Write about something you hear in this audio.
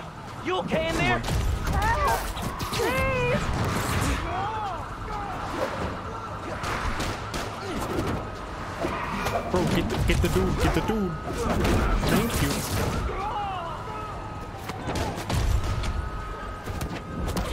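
Heavy thuds land on a car roof.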